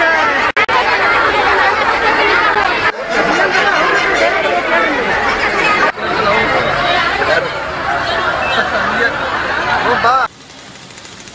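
A crowd of women shouts and talks loudly.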